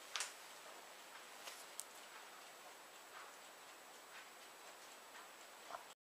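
A paper record sleeve rustles softly as it is handled.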